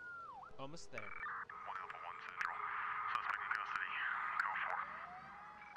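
Gunfire and blasts crackle in rapid bursts.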